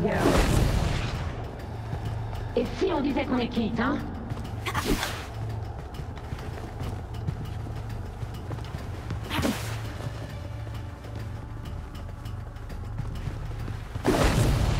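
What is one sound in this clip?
Punches land with heavy thuds during a fistfight.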